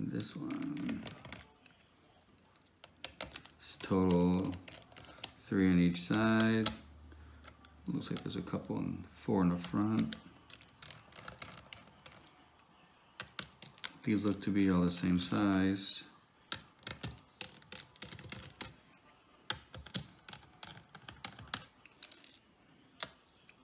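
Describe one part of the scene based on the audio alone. A screwdriver clicks and scrapes against metal screws.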